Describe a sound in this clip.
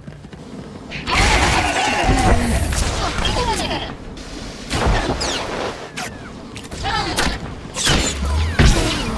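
Laser blasts zap and crackle in a fast fight.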